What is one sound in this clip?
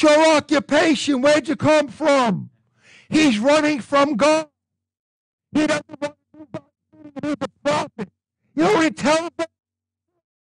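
An older man preaches with animation into a microphone.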